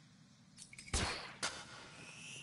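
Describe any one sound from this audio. A grappling line fires with a sharp whoosh.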